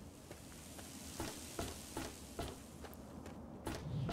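Footsteps crunch on gravel at a steady pace.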